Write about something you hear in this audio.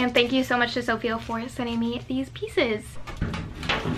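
A young woman talks animatedly close to a microphone.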